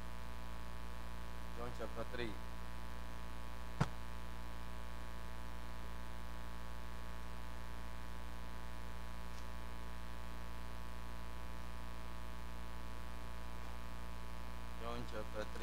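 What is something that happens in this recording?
A loudspeaker system hums steadily.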